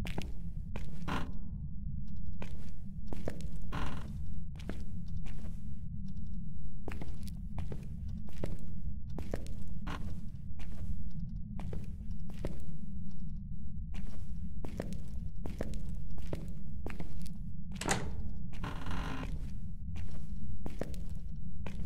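Footsteps walk steadily along a hard floor.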